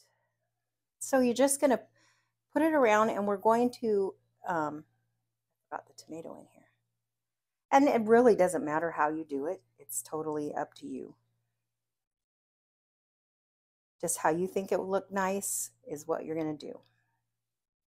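A middle-aged woman talks calmly into a close microphone.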